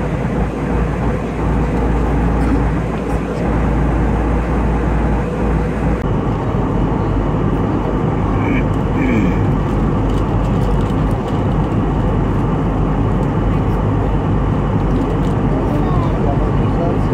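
A jet engine roars steadily in flight.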